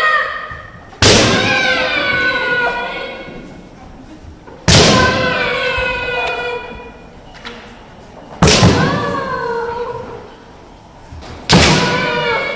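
Bamboo swords strike armour with sharp cracks.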